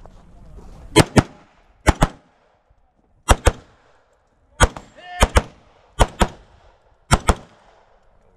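Rifle shots crack loudly in quick pairs outdoors.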